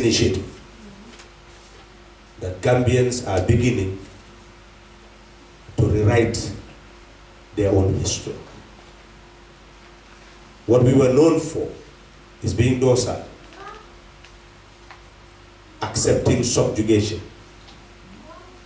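A man speaks slowly into a microphone over loudspeakers, pausing between phrases.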